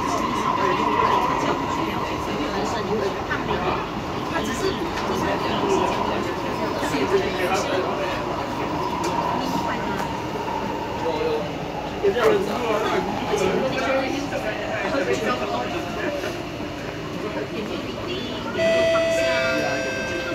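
A train rumbles and hums steadily along elevated tracks.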